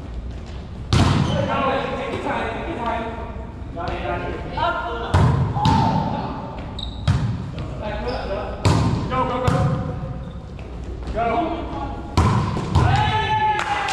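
Young men call out to each other across an echoing court.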